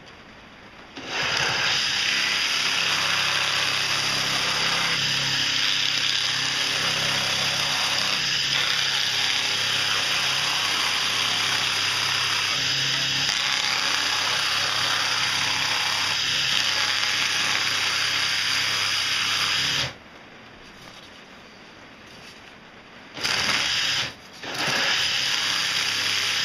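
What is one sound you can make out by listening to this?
A drill motor whirs steadily.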